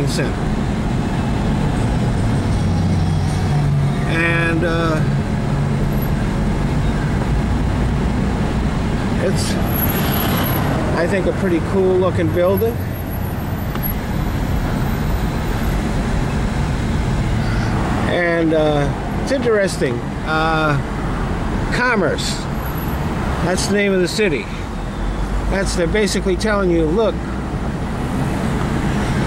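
A car engine hums steadily and tyres roll on a highway, heard from inside the car.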